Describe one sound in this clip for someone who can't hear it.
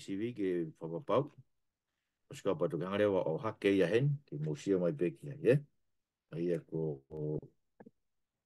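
A middle-aged man speaks earnestly through a computer microphone, as if on an online call.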